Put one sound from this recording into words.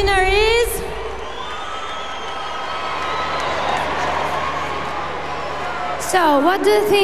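A young woman speaks through a microphone over loudspeakers.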